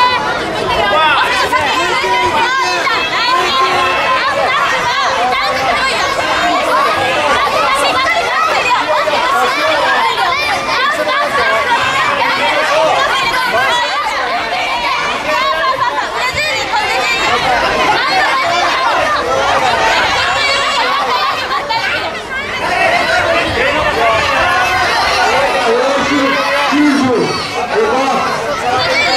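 A crowd of spectators shouts and cheers throughout in a large echoing hall.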